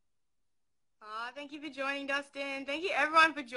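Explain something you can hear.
A young woman speaks cheerfully and close up.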